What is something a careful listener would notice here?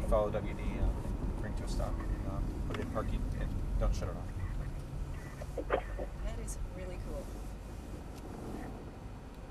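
A car engine hums low as the car slows down.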